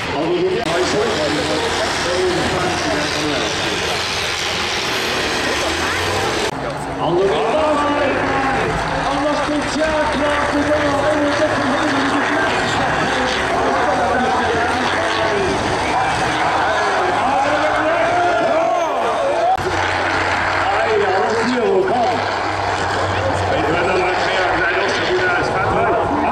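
Diesel engines of racing combine harvesters roar and labour over rough ground.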